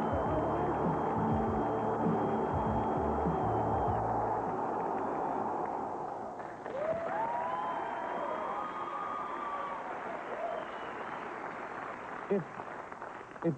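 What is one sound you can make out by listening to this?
A large crowd roars and cheers in a big arena.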